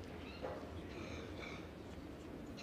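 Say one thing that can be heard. A seated audience murmurs quietly in a large hall.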